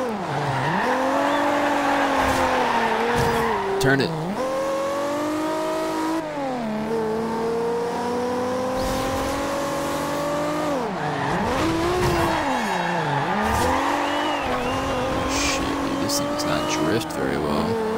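Tyres screech through a drift.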